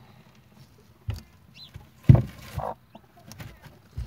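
A plastic tube knocks down onto dirt.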